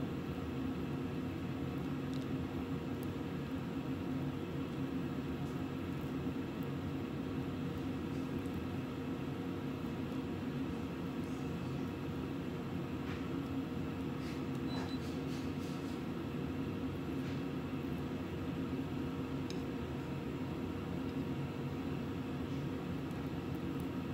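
A metal spoon scrapes soft filling into a pepper.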